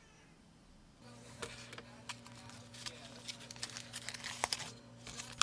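Foil wrapping crinkles.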